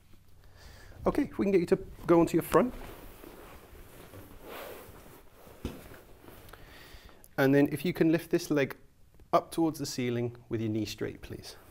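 A man speaks calmly and clearly into a small microphone close by.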